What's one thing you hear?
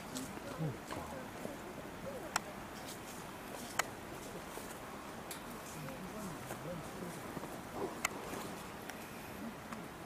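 Leaves rustle as an animal pushes through dense bushes.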